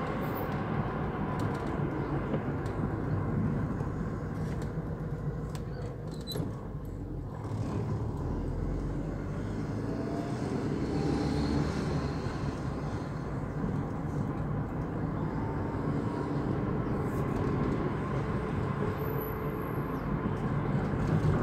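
Tyres roll on asphalt with a low rumble.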